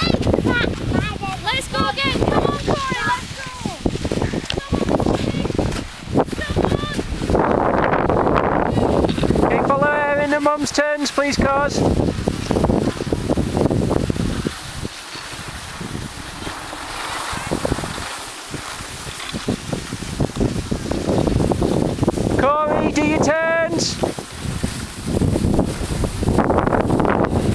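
Skis scrape and hiss over packed snow close by.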